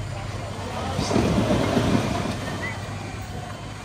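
Dirt pours from a tipping truck bed.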